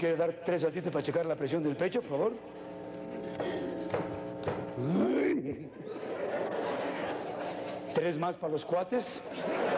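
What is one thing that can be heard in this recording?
A woman speaks clearly on a stage in a large hall.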